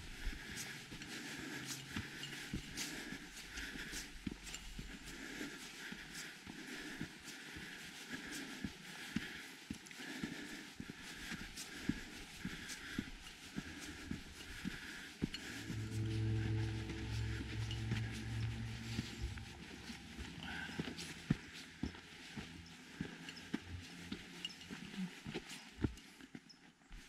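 Footsteps crunch steadily on a dirt trail.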